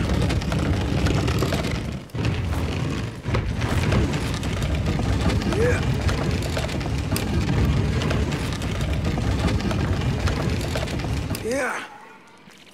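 A heavy wooden shelf scrapes and grinds as it is dragged along the floor.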